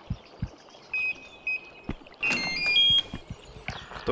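A keypad beeps as buttons are pressed.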